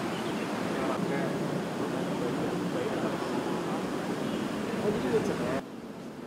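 Footsteps tap on a paved walkway.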